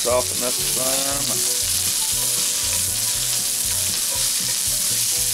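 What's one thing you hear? Onions sizzle and crackle steadily in a hot pan.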